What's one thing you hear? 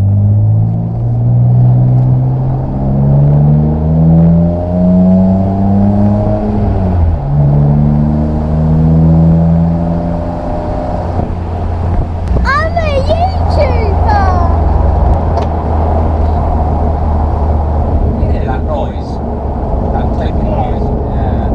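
Wind rushes past an open-top car.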